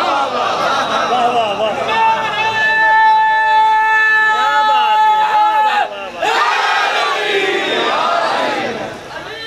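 A man sings loudly and with feeling into a microphone, heard through loudspeakers with echo.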